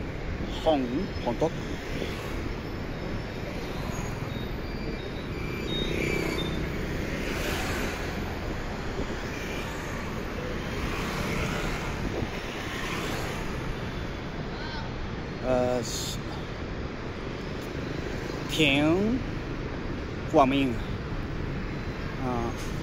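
City traffic rumbles steadily in the distance outdoors.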